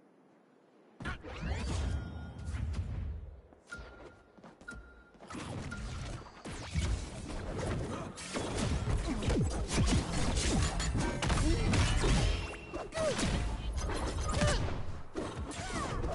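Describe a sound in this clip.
Punches, blasts and whooshes clash rapidly in a cartoon brawl.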